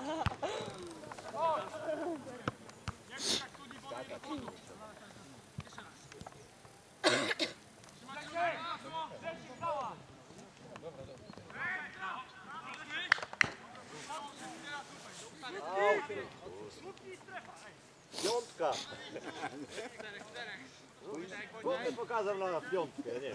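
Young men shout and call to each other across an open playing field outdoors.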